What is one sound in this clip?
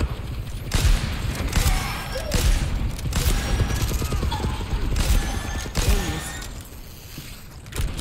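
Loud gunfire and energy blasts burst in quick bursts.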